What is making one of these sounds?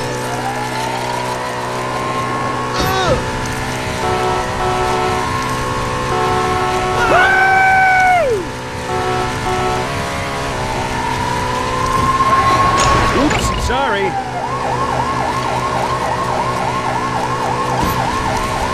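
A siren wails and rises in pitch, then whoops over and over.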